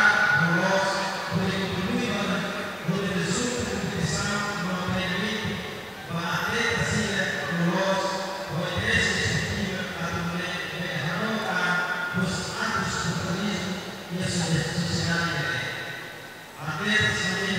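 A middle-aged man speaks steadily into a microphone, heard through loudspeakers in an echoing hall.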